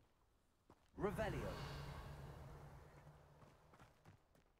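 A magic spell bursts with a sparkling whoosh.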